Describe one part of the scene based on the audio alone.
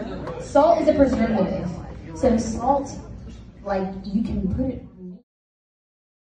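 A woman speaks through a microphone over loudspeakers in a large room.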